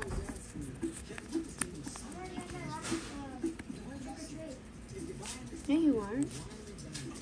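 A card in a plastic sleeve rustles and crinkles between fingers.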